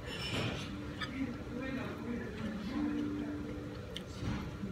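Metal utensils clink lightly against a plate.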